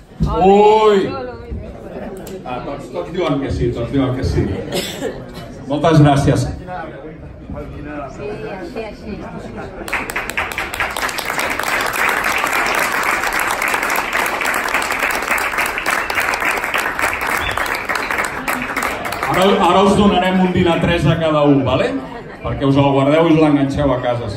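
A man speaks loudly and with animation through a microphone and loudspeaker in an echoing room.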